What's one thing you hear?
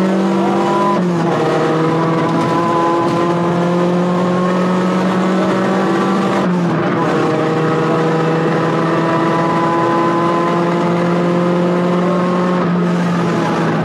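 A rally car shifts up a gear, the engine note dropping sharply.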